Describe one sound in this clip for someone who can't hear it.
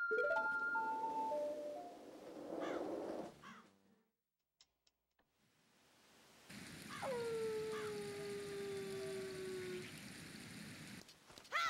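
Game music plays with bright, chiming tones.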